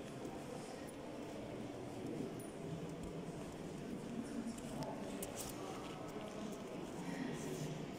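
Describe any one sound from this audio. Visitors murmur quietly in a large echoing hall.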